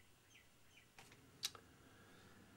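Light knocks sound as a plastic toy plane is handled.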